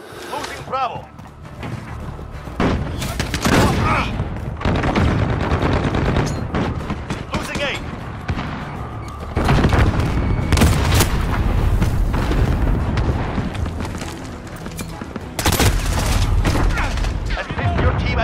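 Rapid gunfire rattles out in loud bursts.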